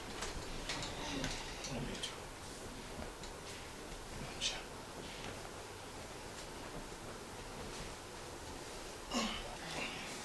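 Cloth rustles as a man pulls on a shirt.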